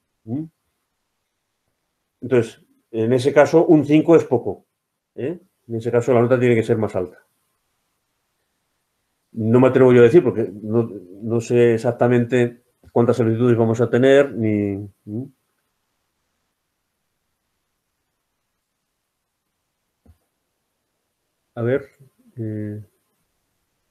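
An older man speaks calmly over an online call, pausing now and then.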